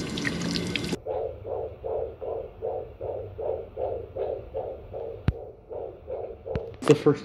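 A fetal heartbeat monitor whooshes in a fast, steady rhythm.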